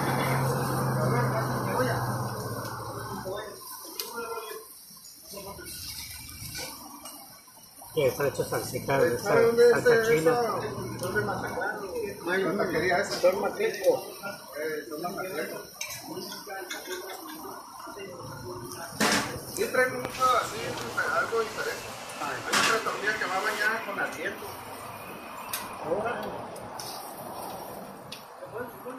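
Peppers sizzle on a hot griddle.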